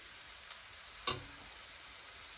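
A metal spoon clinks against a pan.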